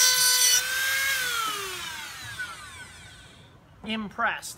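A rotary tool spins down and its whine falls away.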